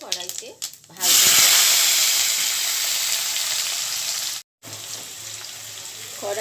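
Potatoes hiss and sizzle loudly as they drop into hot oil.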